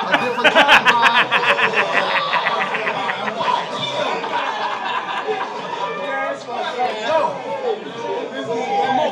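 A man raps with energy, heard through a speaker.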